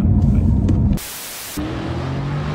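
Static hisses loudly for a moment.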